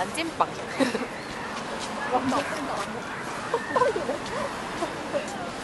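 A small crowd of women and children chatters outdoors.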